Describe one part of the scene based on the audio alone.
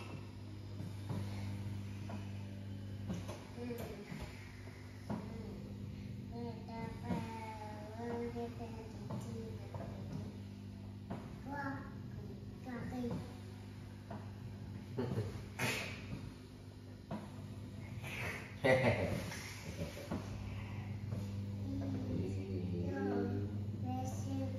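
A massage chair hums and whirs steadily.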